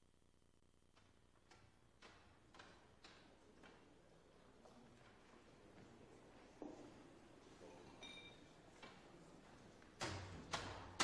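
Men and women murmur quietly in the background.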